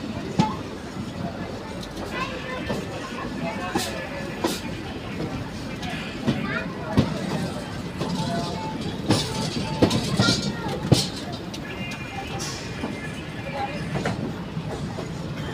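A moving train rumbles and rattles steadily along the track.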